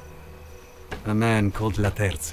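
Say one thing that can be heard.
A young man speaks quietly and close.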